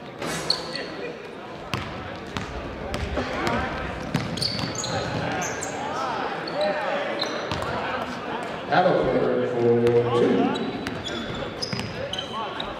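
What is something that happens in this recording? Spectators talk and shout in a large echoing gym.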